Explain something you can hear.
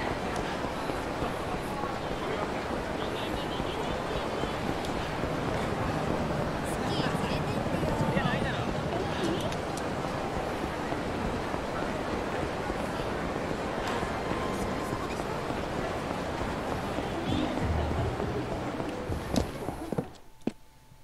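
A busy street crowd murmurs steadily.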